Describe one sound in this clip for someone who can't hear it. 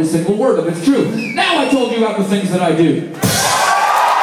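A young man sings loudly into a microphone through a loudspeaker.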